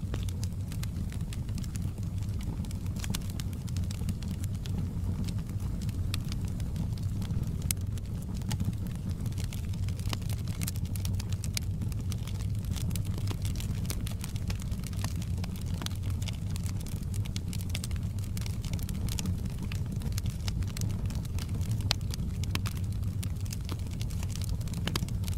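Flames roar with a low, steady rumble.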